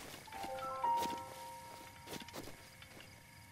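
Footsteps thud softly on grass at a run.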